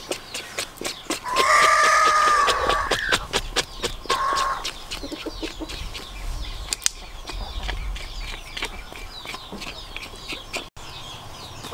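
A knife scrapes rapidly against skin.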